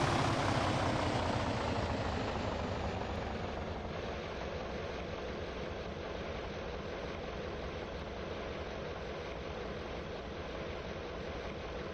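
A bus engine idles steadily.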